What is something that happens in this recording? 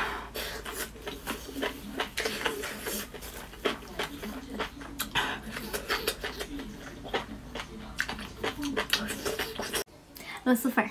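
A woman talks softly close to a microphone.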